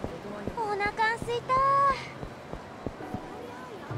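Footsteps hurry along a hard pavement.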